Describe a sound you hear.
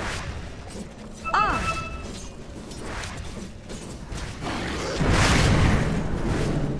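Fantasy game battle sounds clash, zap and whoosh in quick bursts.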